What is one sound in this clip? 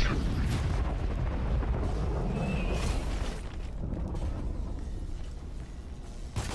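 A rifle fires in rapid bursts nearby.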